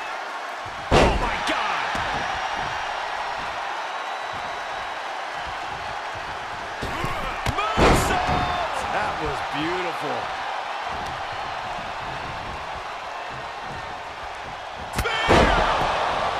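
Heavy bodies slam onto a wrestling ring mat with loud thuds.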